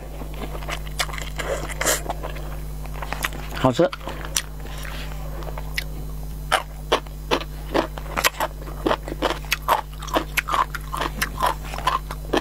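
A young woman chews noodles with wet, smacking sounds.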